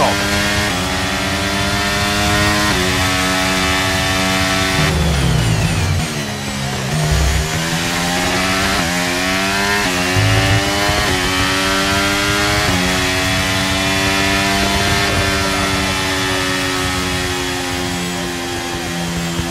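A racing car engine screams at high revs, shifting gears up and down.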